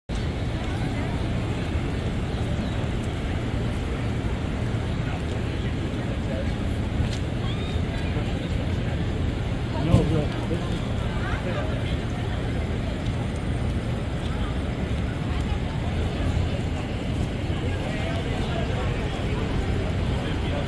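City traffic rumbles steadily nearby.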